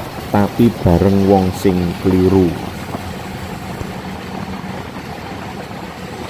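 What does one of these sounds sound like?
Water splashes and sloshes against the side of a boat.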